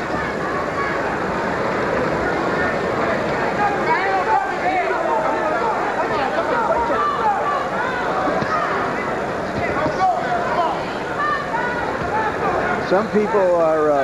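A large crowd murmurs and cheers in a big hall.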